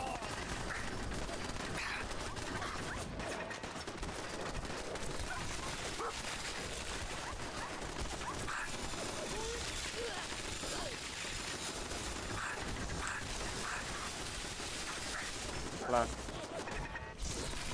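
A minigun fires in rapid, rattling bursts.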